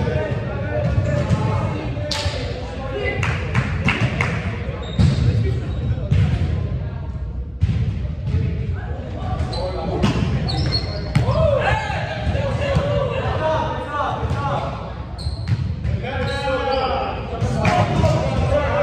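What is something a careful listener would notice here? Young men call out and shout to each other in a large echoing hall.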